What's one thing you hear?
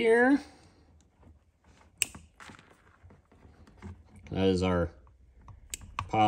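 Pliers click as they crimp a wire connector.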